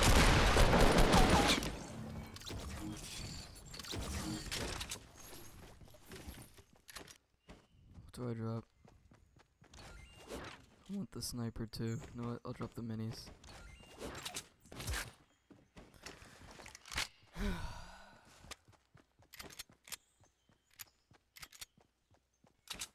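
Footsteps patter quickly on hard ground.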